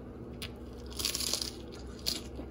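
A man bites into crunchy food.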